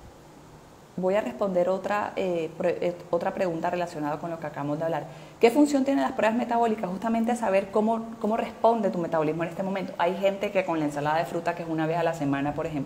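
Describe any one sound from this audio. A middle-aged woman speaks with animation into a close microphone.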